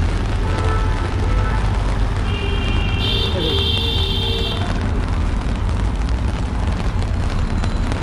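Traffic and street noise rumble steadily outdoors.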